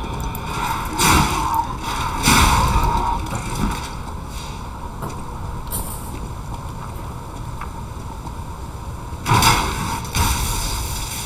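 Heavy blows strike with sharp thuds.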